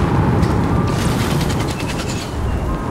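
Arrows fly with quick whistling zips.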